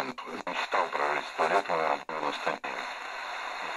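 A man's voice speaks through a small radio loudspeaker.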